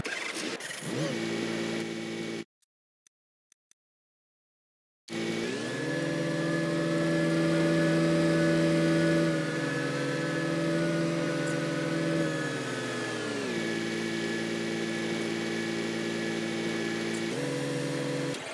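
A tractor engine drones, its pitch rising and falling as it speeds up and slows down.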